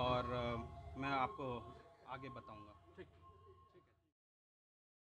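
A young man speaks firmly into microphones close up.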